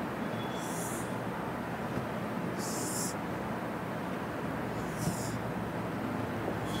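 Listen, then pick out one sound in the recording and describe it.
A marker squeaks in short strokes on a whiteboard.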